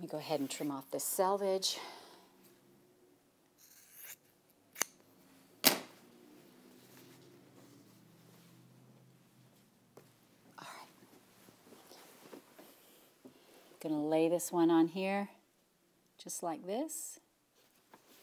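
A middle-aged woman talks calmly and clearly into a microphone.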